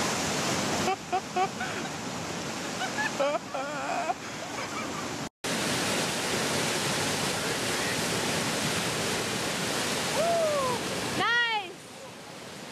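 A man whoops excitedly out on the water.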